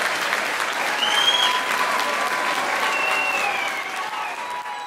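A person in a crowd whistles sharply.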